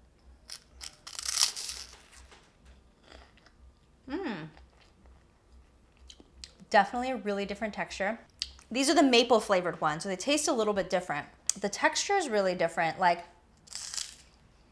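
A woman chews a crunchy meringue.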